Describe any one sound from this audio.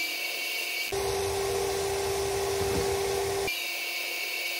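A power sander whirs loudly against metal.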